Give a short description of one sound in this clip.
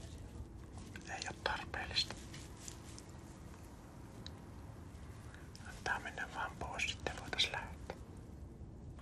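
A man talks softly, close by, in short bursts.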